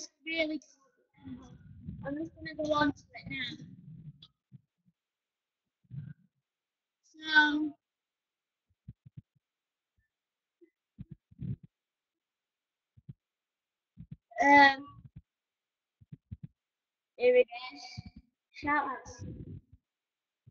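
A boy speaks close to a microphone in short bursts.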